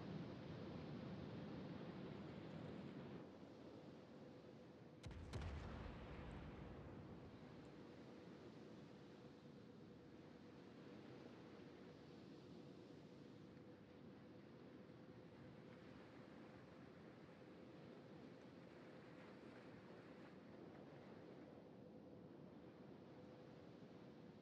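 Water rushes steadily along a moving warship's hull.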